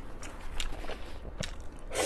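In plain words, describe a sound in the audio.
A young woman slurps noodles close to a microphone.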